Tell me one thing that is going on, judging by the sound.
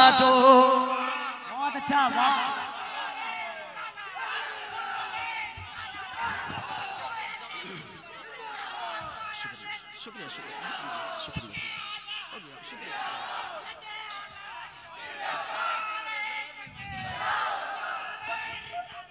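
A crowd of men talk and call out nearby.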